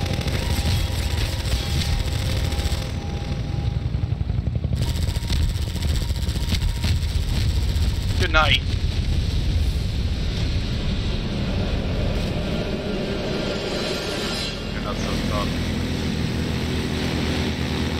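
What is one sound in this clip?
An engine rumbles steadily.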